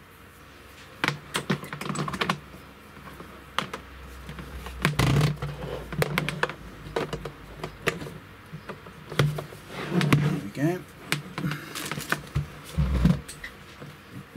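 A plastic monitor knocks and clatters as it is handled.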